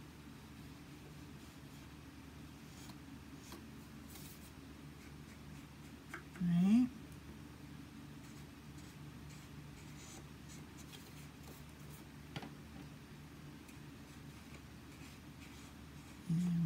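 Stiff paper card rustles and slides as hands handle it.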